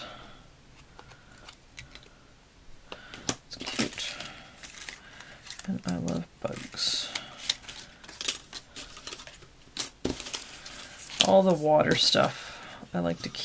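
Paper pieces rustle and tap as they are sorted.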